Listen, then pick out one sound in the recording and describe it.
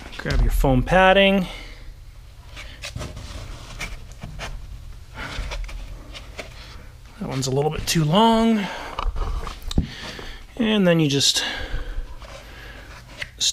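Wooden-backed foam pads knock softly against a board.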